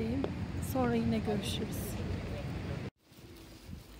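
A middle-aged woman speaks close to the microphone.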